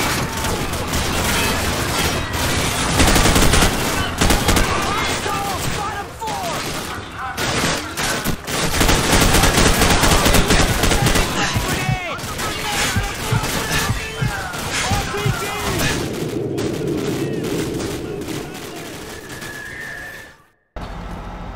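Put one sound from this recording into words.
Rapid rifle gunfire crackles and echoes in a large room.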